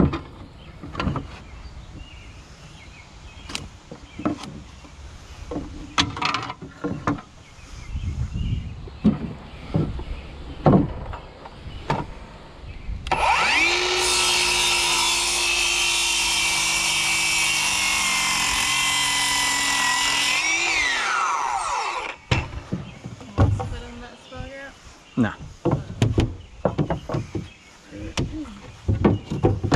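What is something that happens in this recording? Wooden boards knock and clatter against a wooden deck.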